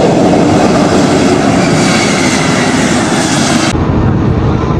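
A jet airliner roars loudly as it lands on a wet runway.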